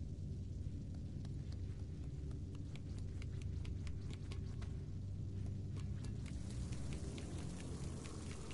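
Small footsteps patter on a hard floor.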